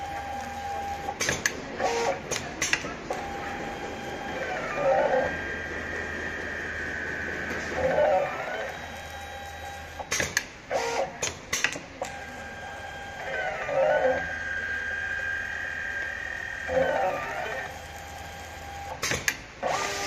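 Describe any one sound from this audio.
An automatic sewing machine hums and whirs with rising and falling motor tones.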